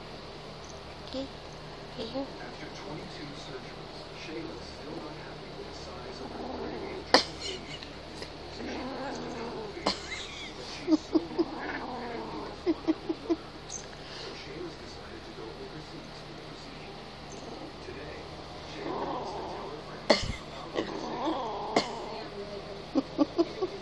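A small kitten scrabbles and pats softly on a carpet and a blanket.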